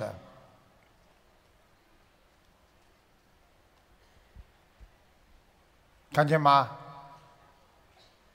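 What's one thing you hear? An older man speaks through a microphone and loudspeakers in a large echoing hall.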